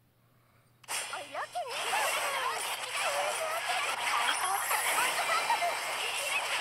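Weapons clash and magic effects whoosh in a fast battle.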